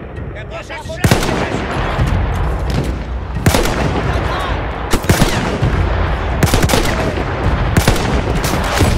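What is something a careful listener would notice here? A rifle fires loud, booming shots, one every second or two.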